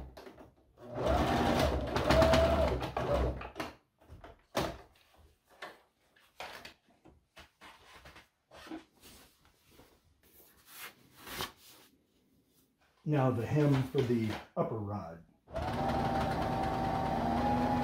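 A sewing machine motor whirs steadily as it stitches.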